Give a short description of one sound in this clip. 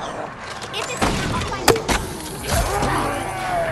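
Heavy blows land with sharp thuds.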